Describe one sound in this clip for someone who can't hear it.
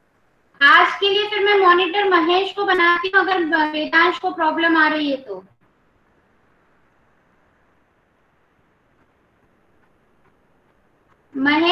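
A child speaks with animation through an online call.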